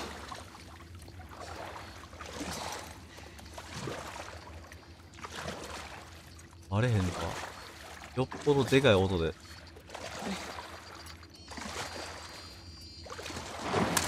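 Water sloshes and splashes as someone wades through it.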